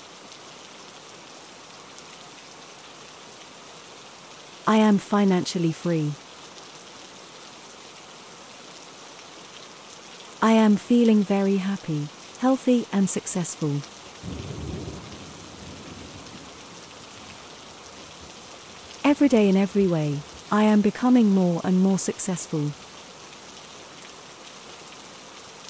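Rain falls steadily and patters.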